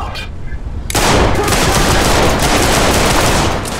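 A gun fires in a rapid, loud burst of shots.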